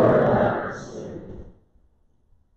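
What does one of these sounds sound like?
A man's voice rings out and fades in a large echoing room.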